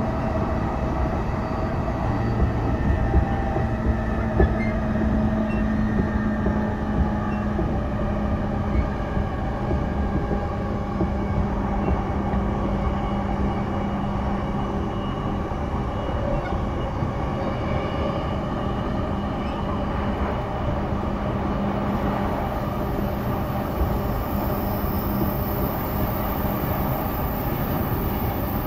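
A train rumbles steadily along the tracks with a low electric motor hum.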